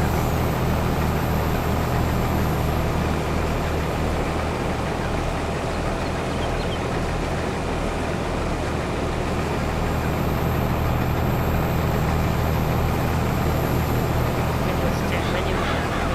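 A combine harvester engine drones steadily while cutting through crops.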